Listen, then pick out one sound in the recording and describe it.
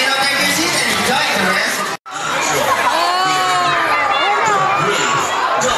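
A crowd of children cheers and chatters loudly.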